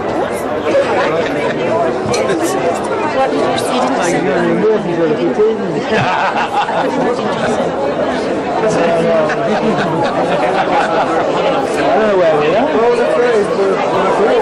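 A crowd of men and women chatter and talk over one another indoors.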